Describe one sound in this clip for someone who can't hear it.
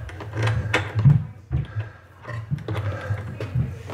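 A screwdriver scrapes and clicks as it turns a small screw.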